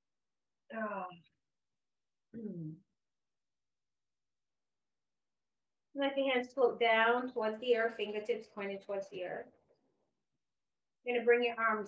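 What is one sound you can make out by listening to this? A woman speaks calmly and slowly into a close microphone, with long pauses.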